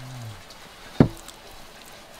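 A metal skewer knocks sharply against a pot.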